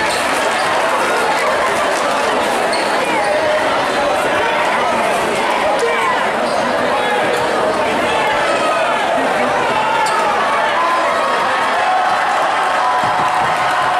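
A large crowd cheers and chatters loudly in an echoing gym.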